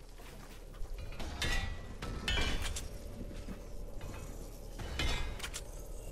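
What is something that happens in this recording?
Building pieces clatter into place.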